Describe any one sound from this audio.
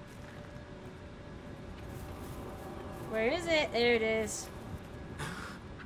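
Footsteps swish through dry grass.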